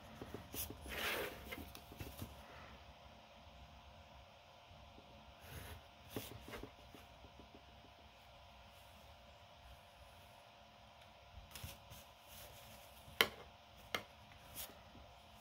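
A plastic protractor slides and taps on paper.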